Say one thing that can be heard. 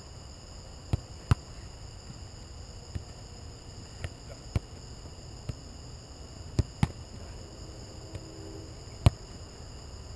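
A football is kicked with sharp thuds outdoors.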